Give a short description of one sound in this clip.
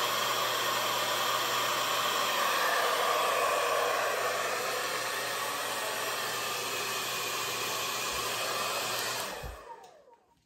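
A hair dryer blows loudly and steadily, then cuts off.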